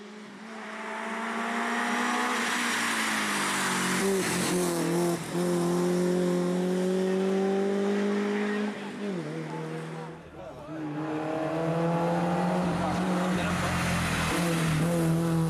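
A rally car engine roars loudly, revving up and dropping as it shifts gears.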